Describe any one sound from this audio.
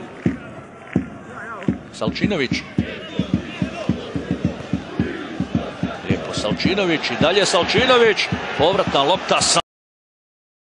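A crowd in a large stadium cheers and shouts.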